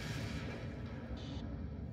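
Laser weapons fire in a space battle.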